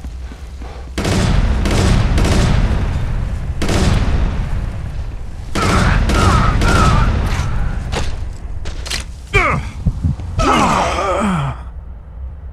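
Rifle shots crack out in loud bursts.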